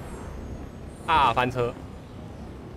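Sparkling magical bursts crackle and chime.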